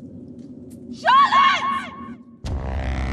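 A young woman shouts out loudly from a distance.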